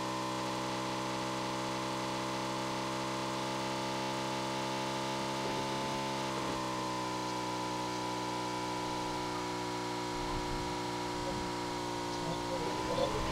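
A motorbike engine drones steadily.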